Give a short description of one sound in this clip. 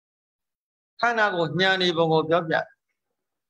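An elderly man speaks calmly into a microphone, heard through an online call.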